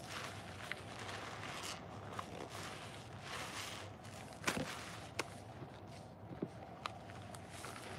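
Rubber gloves squeak against wet sponges.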